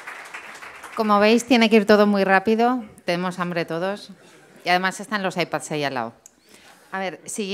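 A woman speaks calmly into a microphone through loudspeakers.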